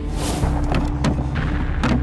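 A wooden lid knocks shut on a crate.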